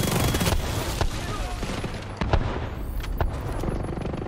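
Single gunshots crack.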